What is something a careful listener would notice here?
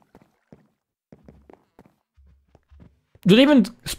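Footsteps tap softly on wood and stone.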